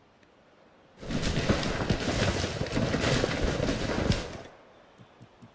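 A dense rush of rustling leaves swells up and then stops.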